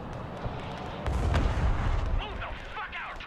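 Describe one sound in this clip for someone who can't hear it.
A missile strike explodes with a deep boom.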